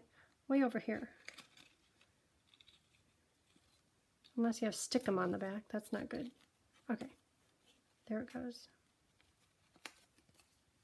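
Paper rustles softly between fingers.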